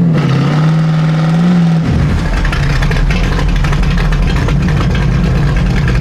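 A car engine roars loudly, then settles into a deep, rough rumble.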